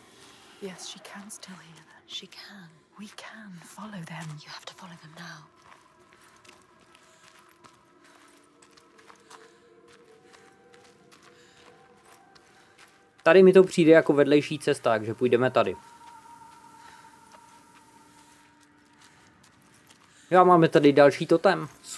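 Footsteps crunch on rocky gravel.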